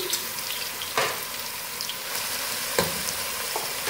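A spatula scrapes against a pot.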